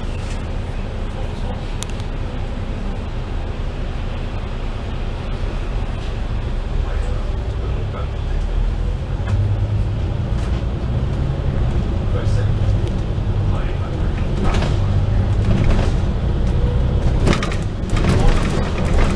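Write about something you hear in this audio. A diesel double-decker bus engine rumbles while driving, heard from inside.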